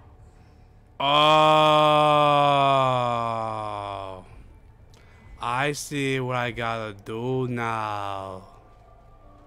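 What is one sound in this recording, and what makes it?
A man close to a microphone lets out long, loud, drawn-out cries.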